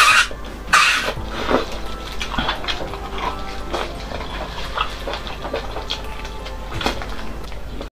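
A young woman chews and slurps food noisily close to a microphone.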